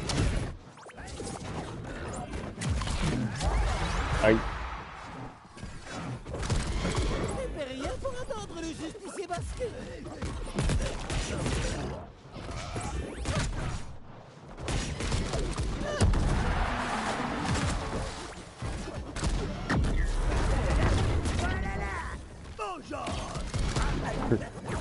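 Cartoon fighters punch and kick with quick thumps and whooshes.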